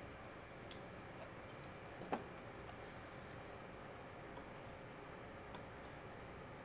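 Small metal tools click and tap against a hard surface.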